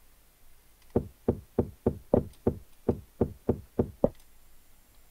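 A pickaxe chips at stone with quick, repeated taps.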